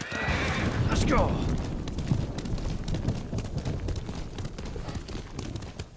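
Tall grass rustles and swishes.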